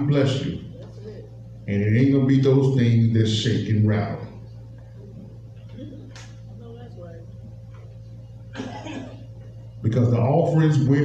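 A man speaks into a microphone with animation, heard through a loudspeaker in an echoing room.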